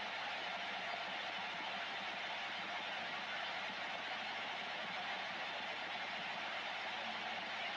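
Static hisses steadily from a radio receiver's speaker.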